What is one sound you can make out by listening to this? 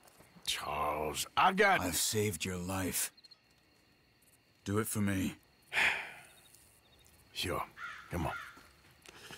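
A man speaks in a low, rough voice close by.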